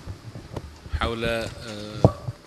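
A man speaks into a microphone in a calm, measured voice.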